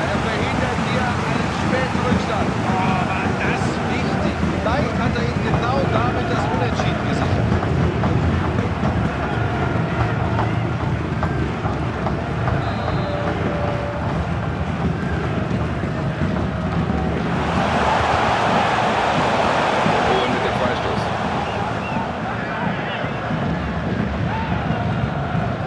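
A large stadium crowd cheers and chants, swelling loudly for a few seconds.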